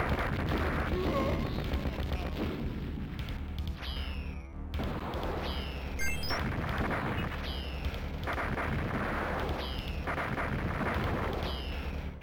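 Arcade game gunfire rattles rapidly.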